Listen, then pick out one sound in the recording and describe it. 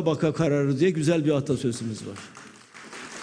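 An elderly man speaks forcefully through a microphone in a large echoing hall.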